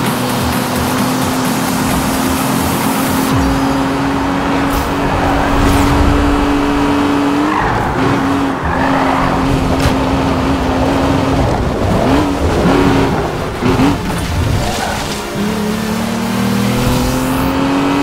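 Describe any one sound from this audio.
Tyres hiss on the road at speed.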